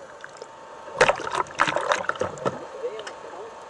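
Water splashes loudly at the surface.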